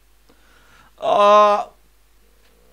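A man lets out a long, loud cry.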